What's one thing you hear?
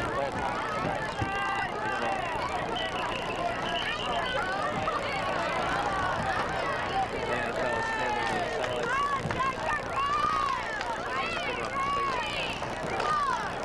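A large crowd talks and cheers outdoors.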